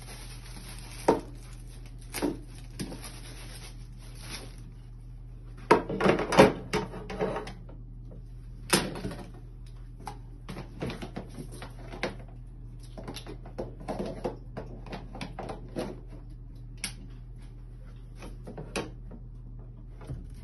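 Plastic parts knock and clatter on a hard surface.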